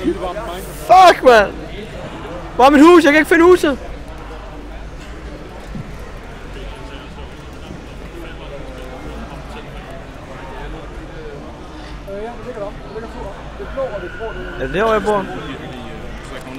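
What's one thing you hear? A young man talks loudly and excitedly into a microphone.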